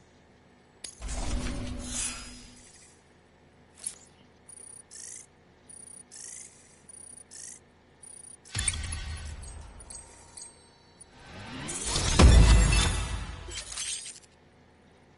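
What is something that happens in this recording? Deep whooshing swells rise and fade.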